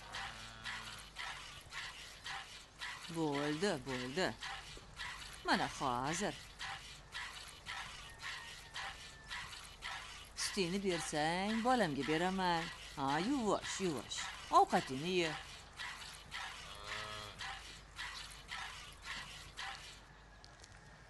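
Milk squirts rhythmically into a pail.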